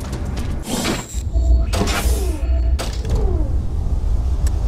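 Electronic menu sounds whoosh and chime as options change.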